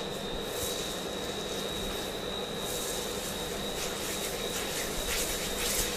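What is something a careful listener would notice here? Fingers rub and scratch through hair.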